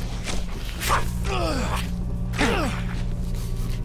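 A creature groans and snarls nearby.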